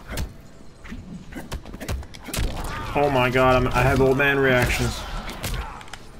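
Blood splatters with a wet crunch.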